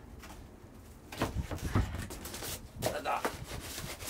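A heavy battery thumps down onto cardboard.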